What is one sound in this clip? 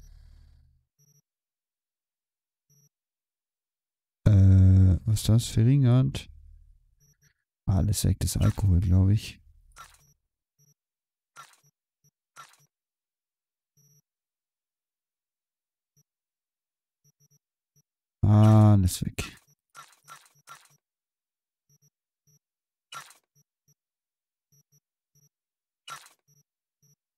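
Short electronic clicks and chimes sound as menu items are selected.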